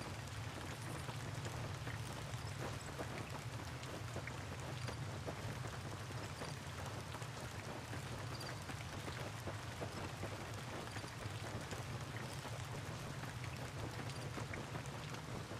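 Footsteps crunch on gravel at a quick pace.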